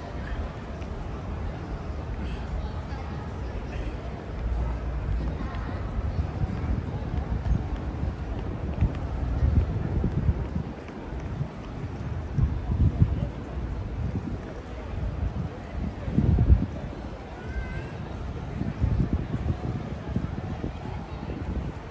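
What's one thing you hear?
A crowd murmurs in the distance outdoors.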